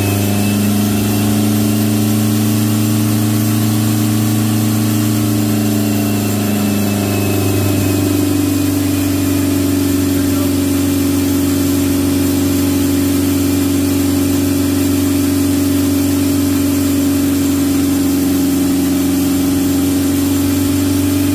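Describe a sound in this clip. A motorcycle engine runs loudly on a roller, its pitch rising around the middle and then holding steady.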